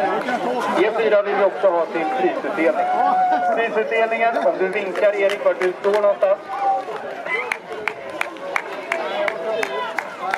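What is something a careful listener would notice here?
A crowd of men and women chatters and calls out close by, outdoors.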